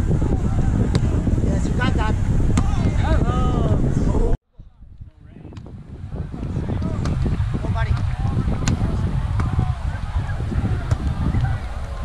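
A volleyball is hit with a sharp slap.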